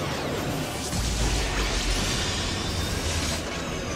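A deep rumbling boom rolls in.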